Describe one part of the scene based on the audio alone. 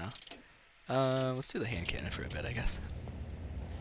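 A pistol clicks and rattles as it is drawn.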